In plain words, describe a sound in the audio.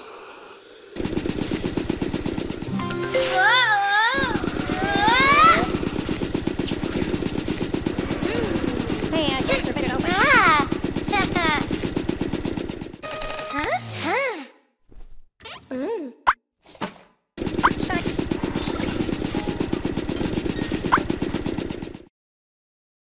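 Upbeat game music plays.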